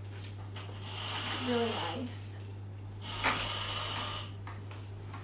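Window blinds rattle and clatter as a cord pulls them up.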